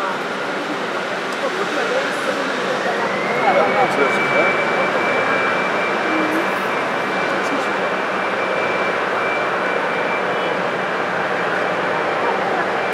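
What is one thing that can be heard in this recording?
A jet airliner's engines roar and whine as it rolls along, the whine rising in pitch and then holding steady.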